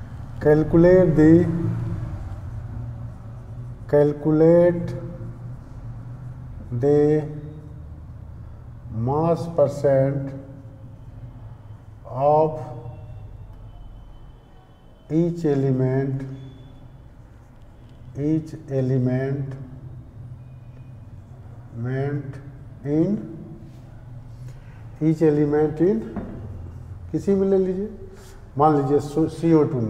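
A middle-aged man speaks slowly and calmly, in short phrases, close by.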